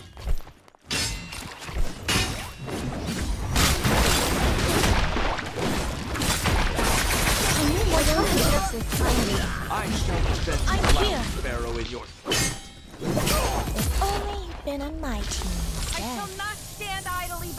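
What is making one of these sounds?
Blades clash and swish in a fast, noisy fight.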